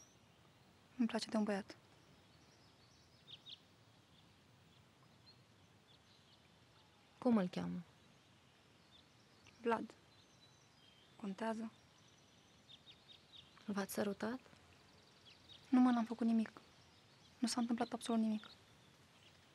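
A second young woman answers softly, close by.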